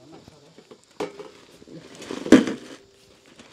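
A metal bar strikes stones and earth.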